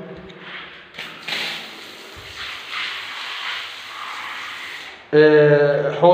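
Water gushes from a hose and splashes onto a hard floor.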